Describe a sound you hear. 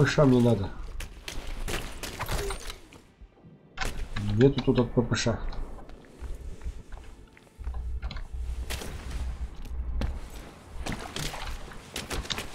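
Boots crunch steadily on the ground.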